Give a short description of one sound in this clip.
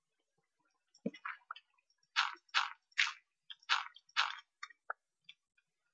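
Crunchy digging sounds break blocks in a game.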